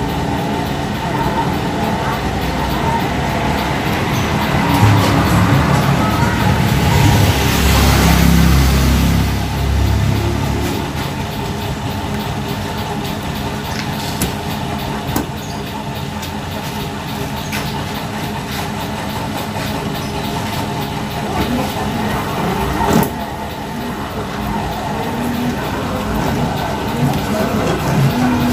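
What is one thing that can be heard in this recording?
A van engine idles with a steady low rumble.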